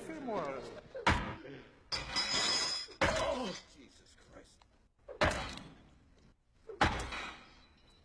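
Heavy blows thud hard, one after another.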